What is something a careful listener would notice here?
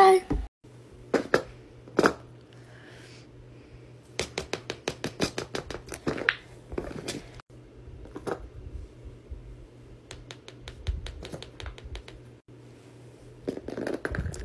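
Fidget toys press and pop with quick soft clicks.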